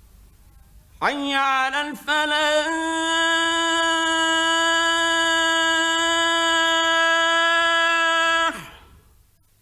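A man chants a long, sustained note in a strong, clear voice.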